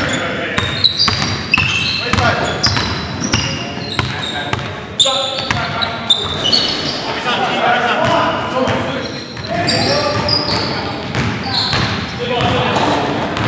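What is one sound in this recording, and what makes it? A basketball bounces with hollow thuds on the floor.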